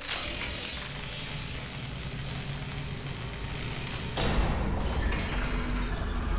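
Electric sparks crackle and hiss.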